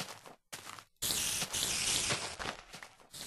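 A sword strikes a spider with thuds.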